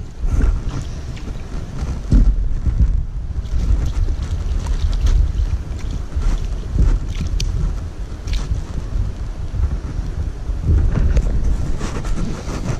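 Water laps and splashes gently at close range.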